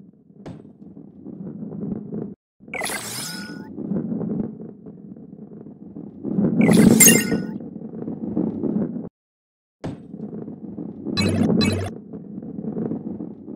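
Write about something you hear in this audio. A heavy ball rolls along with a low, rumbling sound.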